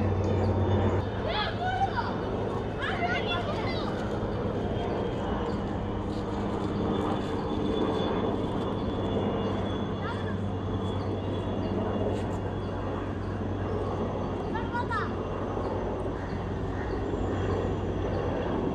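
A helicopter drones far overhead with a steady low thump.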